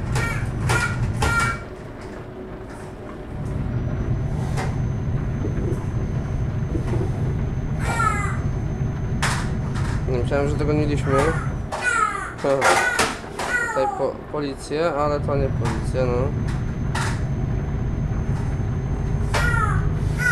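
A truck engine hums steadily as the truck drives along a road.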